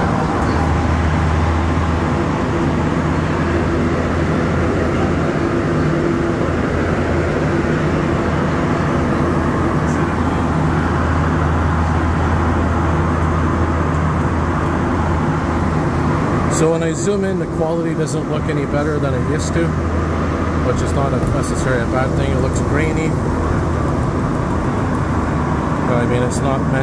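A subway train rumbles loudly through a tunnel.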